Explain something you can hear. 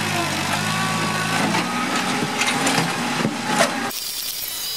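A concrete slab scrapes and cracks as a loader bucket lifts it.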